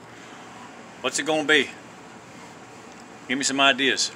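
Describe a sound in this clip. A middle-aged man talks calmly and close by, in short bursts.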